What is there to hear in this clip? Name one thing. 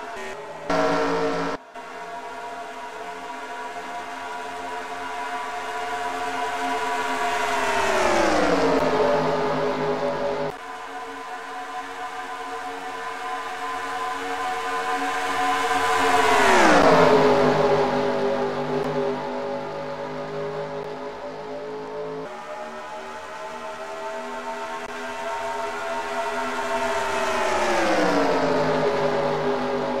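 Race car engines roar as cars speed past, rising and falling in pitch.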